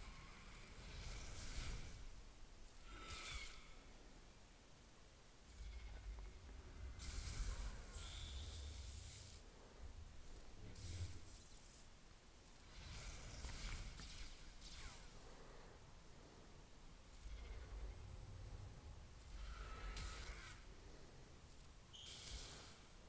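Lightsabers hum and clash.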